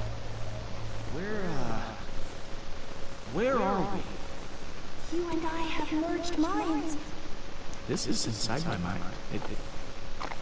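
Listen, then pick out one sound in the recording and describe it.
A man speaks with wonder, close by.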